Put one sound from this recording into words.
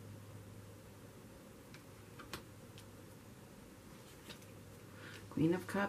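Cards are laid softly onto a cloth-covered table.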